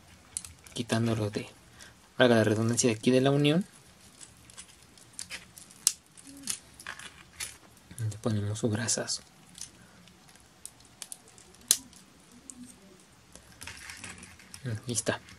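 Plastic toy parts click and snap as they are twisted and moved.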